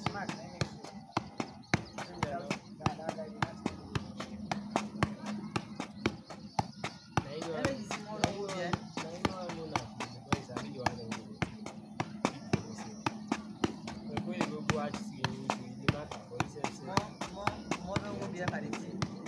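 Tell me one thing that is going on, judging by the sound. A football thuds as it is kicked with the foot.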